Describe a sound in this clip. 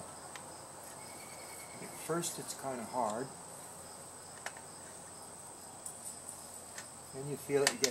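A metal wrench clicks against a bicycle part.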